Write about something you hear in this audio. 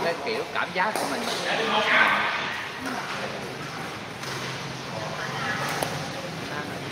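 Paddles hit a plastic ball with sharp pops in an echoing hall.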